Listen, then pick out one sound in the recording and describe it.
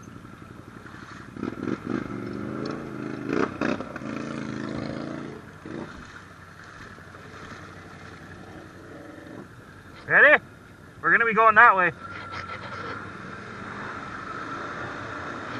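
Water splashes and churns around tyres.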